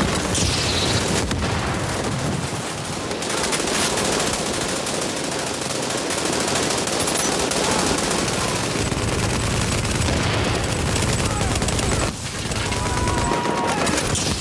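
Footsteps run over snowy ground.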